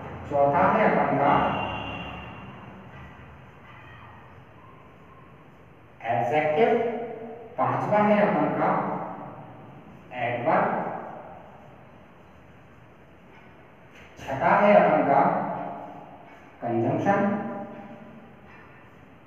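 A man speaks in bursts, explaining calmly in an echoing room.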